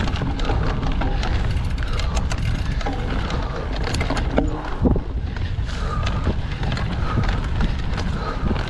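Wind rumbles loudly against the microphone.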